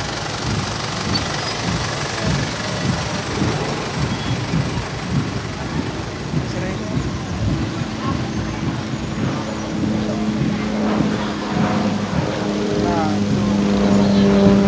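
Cars drive past on a road, their engines and tyres rumbling.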